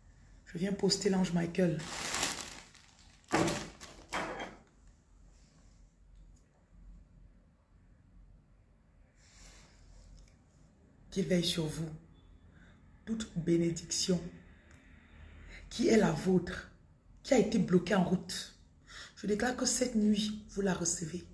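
A woman speaks calmly and close up, with pauses.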